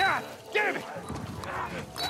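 A man curses under his breath.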